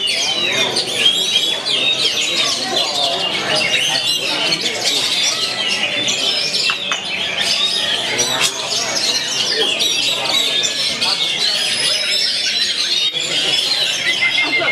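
A songbird sings loudly and continuously in a fast, varied warble.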